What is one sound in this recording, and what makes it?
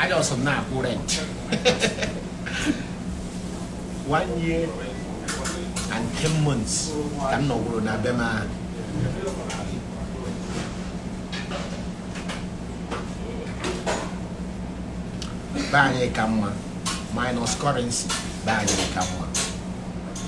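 A young man talks casually and laughs close by.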